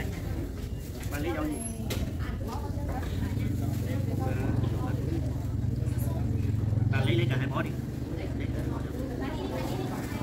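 A woman talks calmly nearby.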